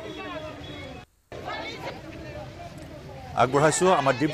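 A crowd of women chants and murmurs outdoors.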